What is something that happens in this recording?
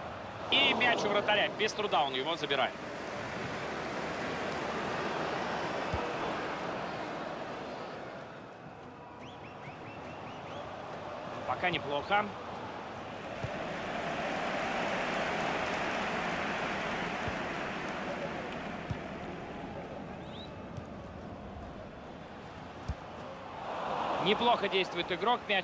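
A large stadium crowd roars and chants, swelling and fading.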